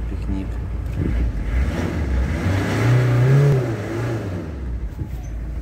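A car engine revs up and then settles back down.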